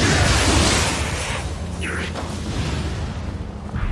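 A sword clashes and slashes in a fight.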